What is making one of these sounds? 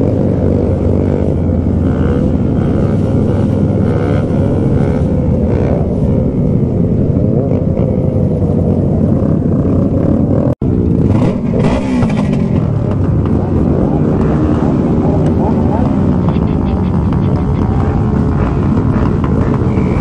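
Many motorcycle engines roar and rev loudly nearby.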